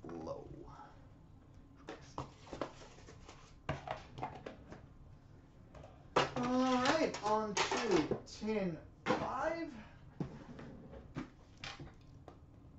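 Cardboard boxes knock and rustle as they are handled.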